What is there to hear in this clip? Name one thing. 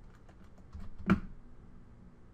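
A short game sound effect plays as a card is put down.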